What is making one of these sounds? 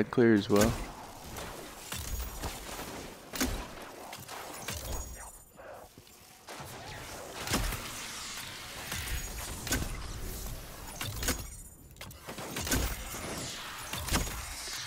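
A gun fires in repeated sharp shots.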